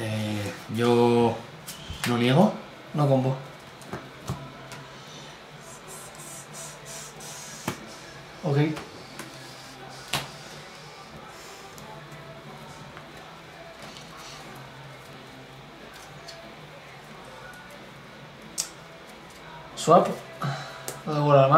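Playing cards are shuffled and tapped on a table.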